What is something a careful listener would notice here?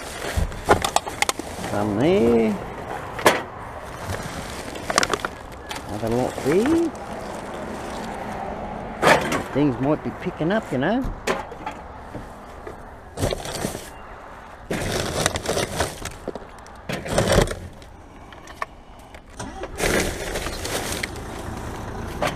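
Plastic bags rustle and crinkle as a gloved hand rummages through a bin.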